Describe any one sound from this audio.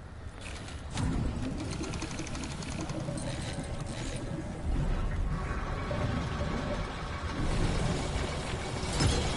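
Bubbling apparatus gurgles and hums steadily.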